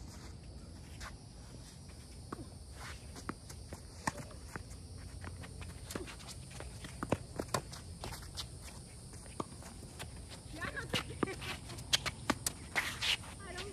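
A tennis racket strikes a ball with sharp pops, back and forth.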